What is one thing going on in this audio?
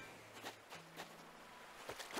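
Light footsteps patter on sand.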